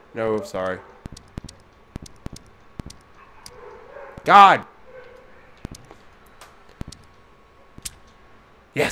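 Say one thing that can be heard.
Small metal clicks sound as a padlock's number wheels turn.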